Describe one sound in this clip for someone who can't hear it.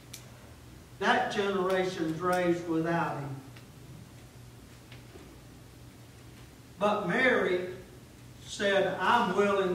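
A middle-aged man speaks with animation through a microphone, pausing between phrases.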